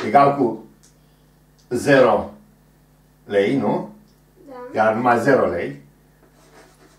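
An older man speaks in short, calm phrases close by.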